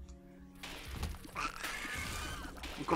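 A splashing burst sounds as enemies burst apart.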